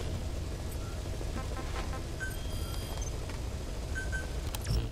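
Short electronic beeps sound as a menu is browsed.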